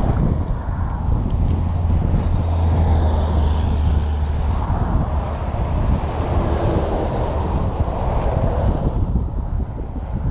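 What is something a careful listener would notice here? Wind rumbles loudly across a microphone outdoors.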